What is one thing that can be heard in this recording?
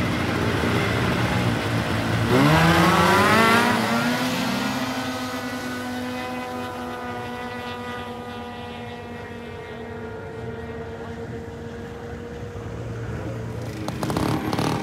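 A snowmobile engine revs up loudly nearby, then drones away into the distance.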